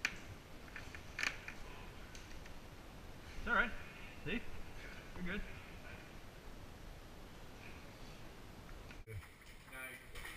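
Climbing gear clinks and rattles close by.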